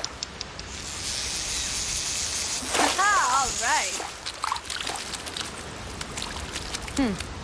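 A fish splashes loudly as it is pulled out of the water.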